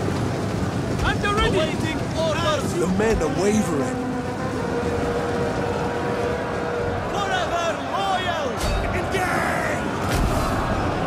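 Horses neigh shrilly now and then.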